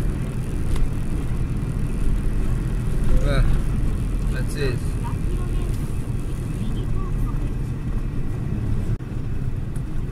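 A vehicle engine rumbles low and steady from inside the cab.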